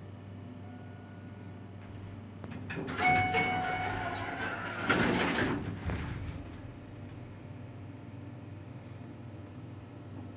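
An elevator hums steadily.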